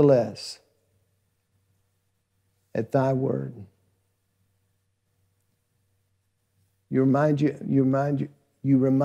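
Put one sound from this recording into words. A middle-aged man speaks slowly and calmly into a microphone, with long pauses.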